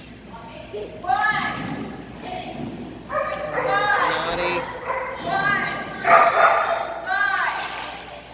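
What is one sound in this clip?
A woman calls out excitedly to a dog.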